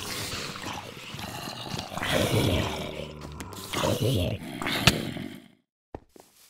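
A sword swishes and thuds against monsters.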